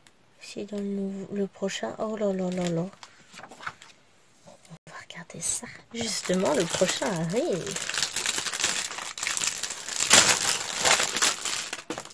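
Paper pages rustle and flap as they are turned and moved.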